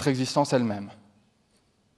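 A young man speaks into a microphone in a large hall.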